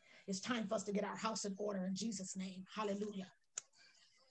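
A woman speaks passionately through an online call.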